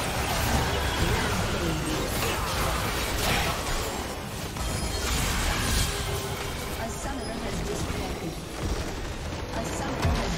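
Spell effects and hits crackle in a video game battle.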